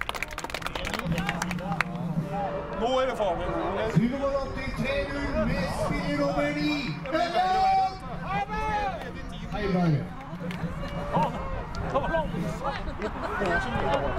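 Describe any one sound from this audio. Adult spectators talk nearby.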